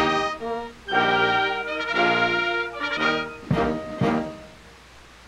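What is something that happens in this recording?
A brass band plays a march.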